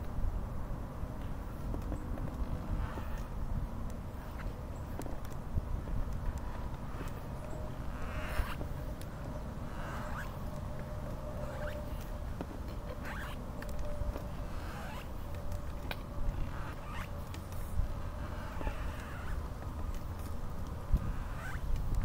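Footsteps pad steadily along a pavement.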